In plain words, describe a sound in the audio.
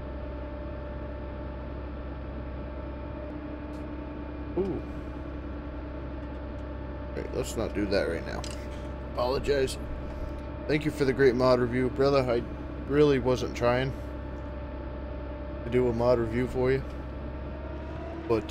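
A machine's engine idles with a steady low hum.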